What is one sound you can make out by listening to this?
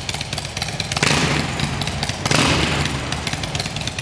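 A motorcycle engine revs up sharply twice and falls back.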